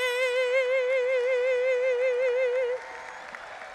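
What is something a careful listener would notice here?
A young woman sings a long, wavering note through a microphone on a loudspeaker.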